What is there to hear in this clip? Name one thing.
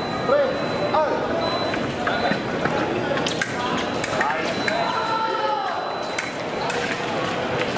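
Fencing blades click and clash.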